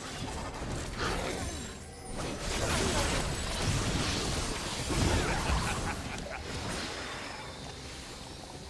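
Magic spells whoosh and crackle in a fast battle.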